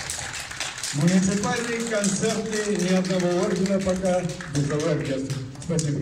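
An elderly man speaks calmly and loudly to an audience.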